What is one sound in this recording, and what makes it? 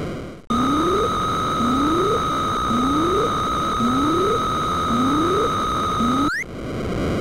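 Short electronic bleeps rise in pitch again and again.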